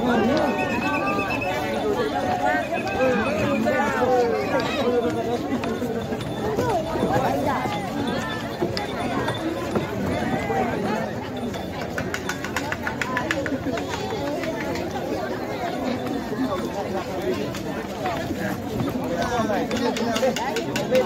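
Men chant together in rhythm.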